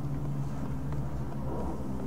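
Footsteps thud up wooden stairs.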